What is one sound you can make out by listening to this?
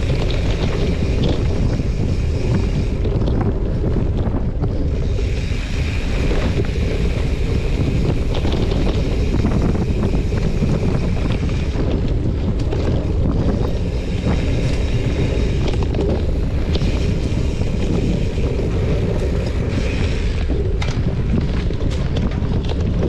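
Wind rumbles loudly against a moving microphone.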